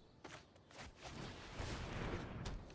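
A magical spell effect shimmers and swells.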